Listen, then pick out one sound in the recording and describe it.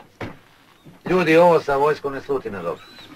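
A middle-aged man speaks up with animation to a group.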